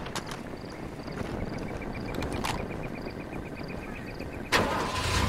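A car engine starts and idles, with a low steady rumble.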